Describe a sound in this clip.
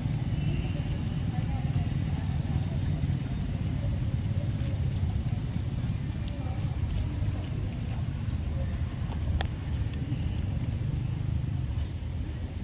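A monkey chews soft fruit with wet smacking sounds.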